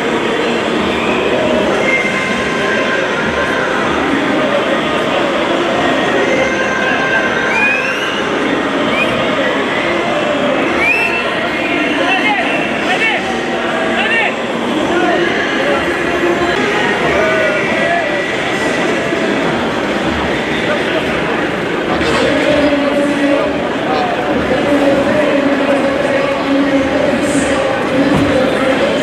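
Several men talk in a loud, busy murmur close by.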